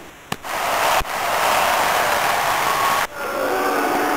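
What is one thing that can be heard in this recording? A crowd in an arena cheers and roars.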